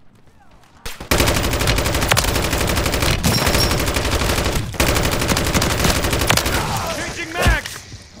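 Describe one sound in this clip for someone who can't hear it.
A rifle fires in rapid, loud bursts.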